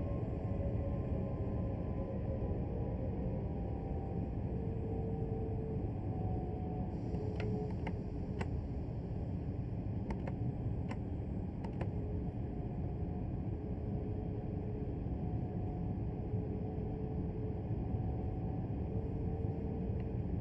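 An electric train motor hums with a low whine.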